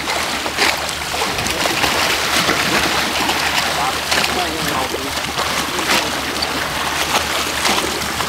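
A swimmer's arms splash rhythmically through the water.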